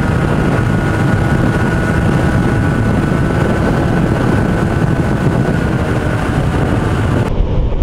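Wind roars loudly past a motorcycle riding fast on a highway.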